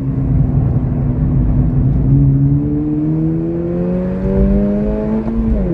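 A car engine roars close by, rising steadily in pitch as the car speeds up.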